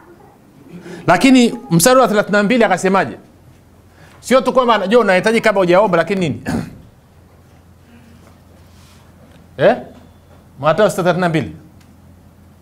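A middle-aged man speaks calmly and clearly into a microphone, with pauses.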